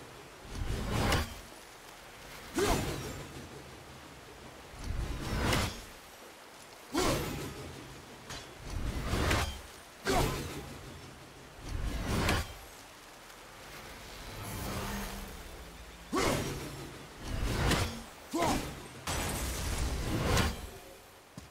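An axe whooshes through the air in repeated throws.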